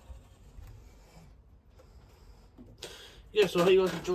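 A washing machine door shuts with a click.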